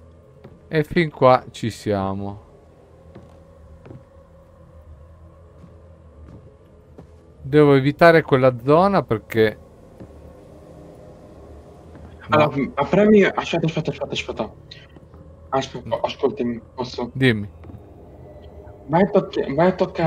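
A middle-aged man talks with animation into a close microphone, in short bursts.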